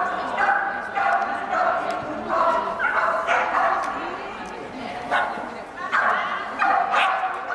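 A woman calls out commands with animation in a large echoing hall.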